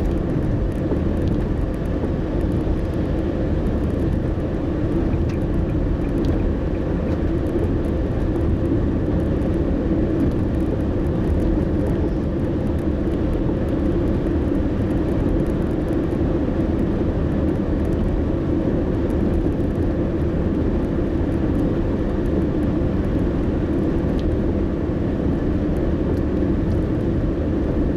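A car's engine hums and tyres roar steadily on the road from inside the moving car.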